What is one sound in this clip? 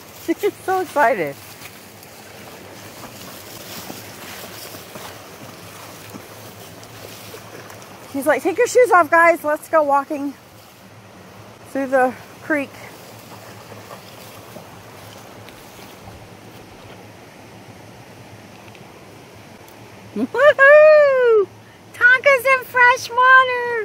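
A shallow stream flows gently.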